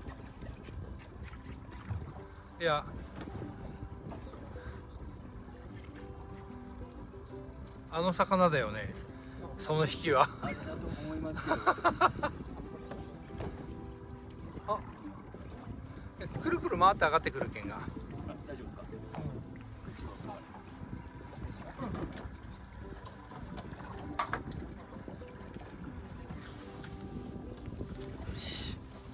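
Waves lap against a boat's hull.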